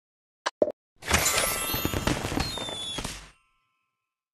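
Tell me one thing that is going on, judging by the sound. A short jingle plays as rewards pop up.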